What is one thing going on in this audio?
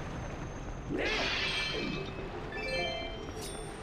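A metal grappling chain shoots out with a sharp whirring clatter.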